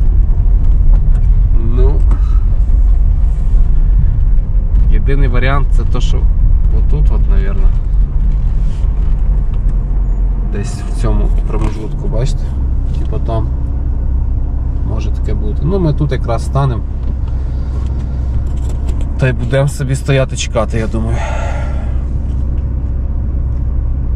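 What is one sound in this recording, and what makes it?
A car engine rumbles low as the car drives over a bumpy road.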